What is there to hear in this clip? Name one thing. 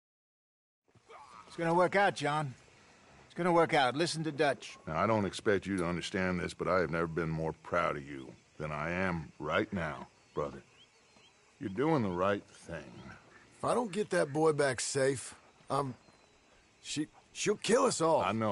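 An older man speaks calmly and gravely.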